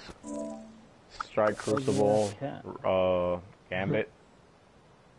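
Menu chimes blip in quick succession.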